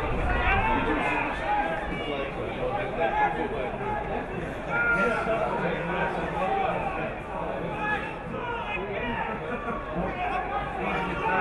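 A crowd of spectators murmurs and calls out in an open stadium.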